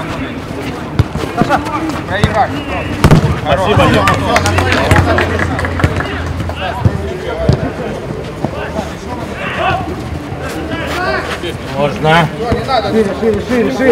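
A football is kicked with sharp thuds.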